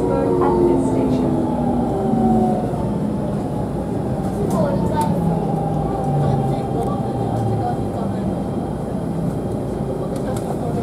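Train wheels rumble and clack over rail joints.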